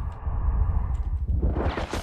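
An automatic rifle fires a burst.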